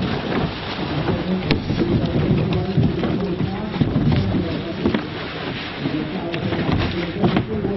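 Water splashes as a person wades through shallow water.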